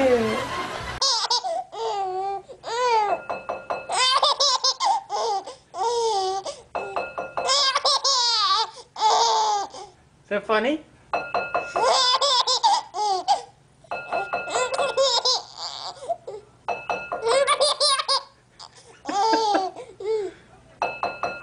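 A baby giggles and squeals with laughter in bursts.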